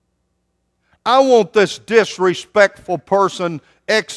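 A man speaks with emphasis into a microphone in a large echoing hall.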